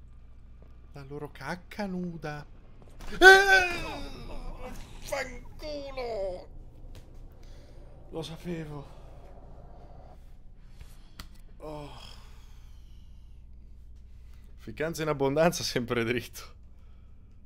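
A young man talks and exclaims into a close microphone.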